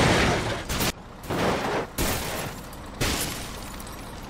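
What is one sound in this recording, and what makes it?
A bus crashes heavily into water with loud splashes.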